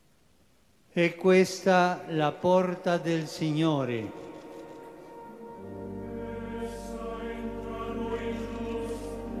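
An elderly man chants loudly through a microphone in a large echoing hall.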